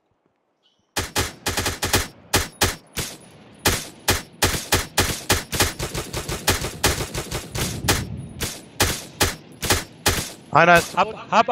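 A rifle fires rapid shots that crack and echo.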